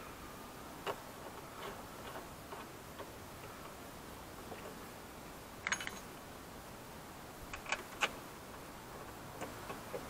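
Small metal parts click and clatter against a car door panel.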